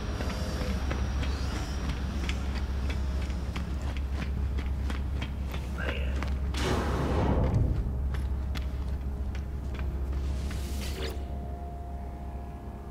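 Footsteps tap steadily on a metal floor.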